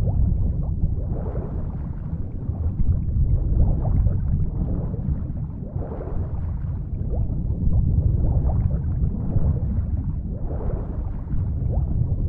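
Deep explosions rumble and roar without pause.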